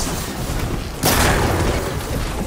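A burst of electric energy crackles and shatters.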